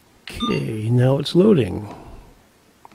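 A handheld radio plays a short startup chime.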